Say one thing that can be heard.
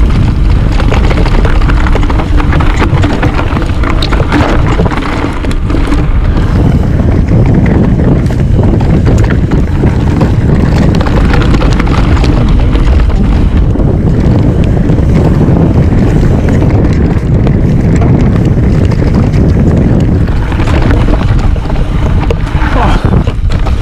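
A bike's chain and frame rattle over bumps.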